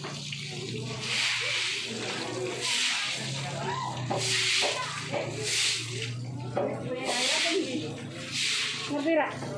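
Water sprays from a hose onto a wet floor.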